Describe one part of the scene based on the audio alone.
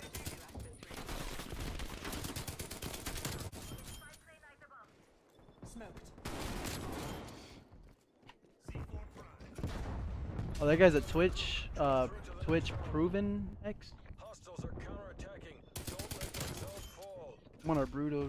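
Rapid bursts of gunfire crackle loudly.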